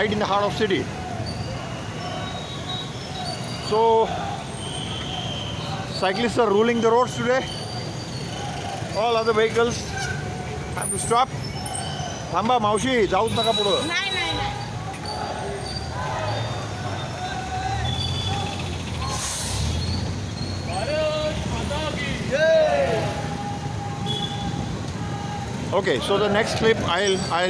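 Motorbike engines hum along a busy street.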